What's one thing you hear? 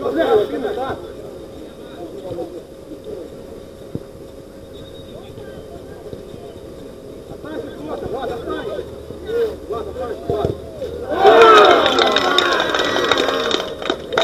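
Young men shout and call out to each other across an outdoor pitch.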